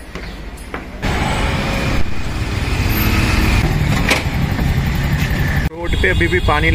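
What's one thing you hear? An auto rickshaw engine idles and putters nearby.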